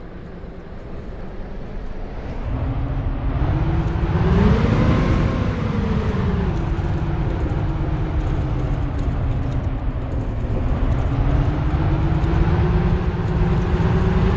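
A bus engine hums and rises in pitch as it speeds up, then settles.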